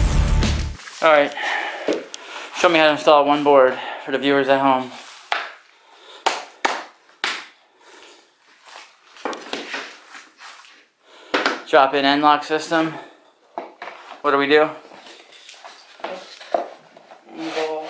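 Wooden floorboards knock and clack as they are laid.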